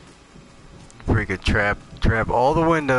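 A man speaks loudly and with animation into a close microphone.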